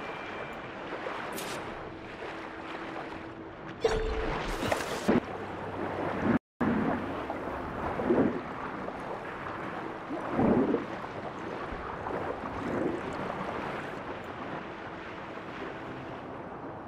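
Water swirls and bubbles steadily around a swimmer underwater.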